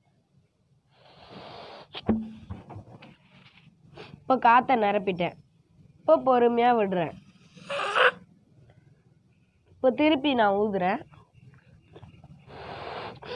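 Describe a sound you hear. A boy blows air into a balloon in short puffs.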